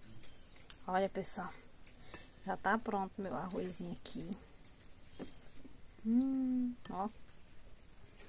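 A metal spoon scrapes and scoops rice in a pot.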